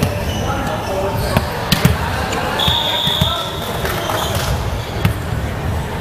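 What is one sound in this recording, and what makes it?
A volleyball bounces on a wooden floor.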